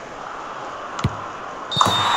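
A football is kicked with a sharp thud.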